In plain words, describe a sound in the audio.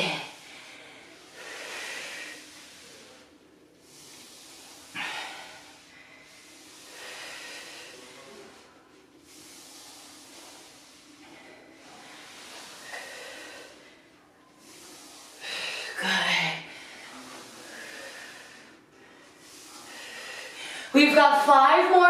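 Sliders swish back and forth across a floor in a steady rhythm.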